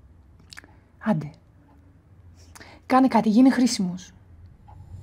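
A woman speaks close by in a low, pleading voice.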